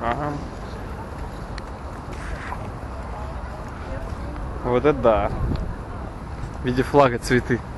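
A crowd murmurs in the distance outdoors.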